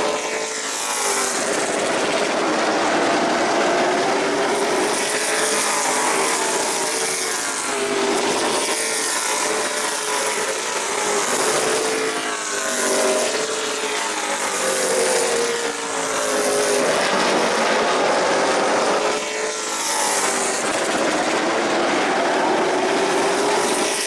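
Many race car engines roar loudly together, rising and falling in pitch as the cars pass.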